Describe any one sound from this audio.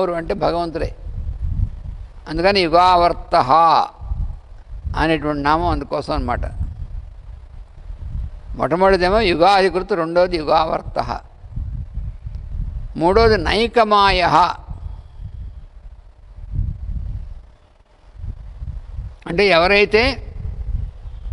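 An elderly man chants in short melodic phrases close to a microphone.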